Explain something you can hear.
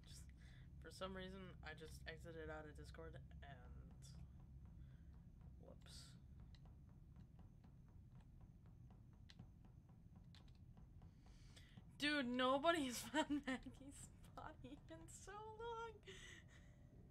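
A young person talks into a close microphone with animation, in bursts.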